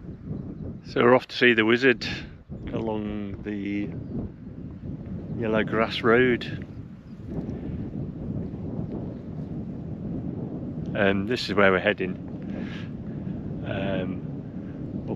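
A middle-aged man talks with animation close to a microphone, outdoors in light wind.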